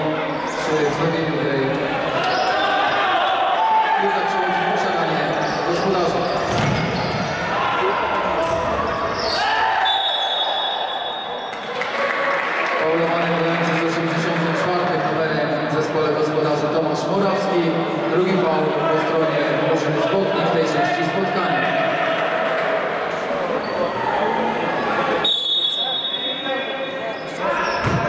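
A crowd of spectators chants and sings loudly in an echoing hall.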